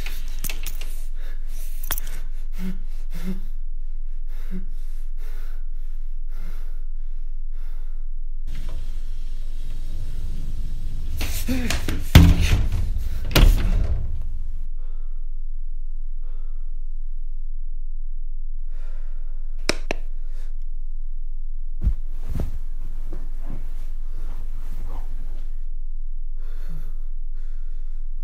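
A young man whispers quietly close by.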